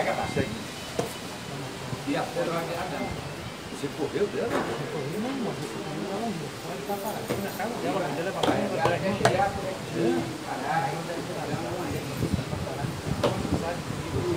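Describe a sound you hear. Checkers pieces click and tap on a board.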